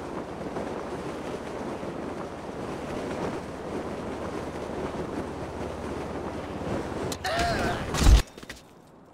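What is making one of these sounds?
Wind rushes loudly past a falling parachutist.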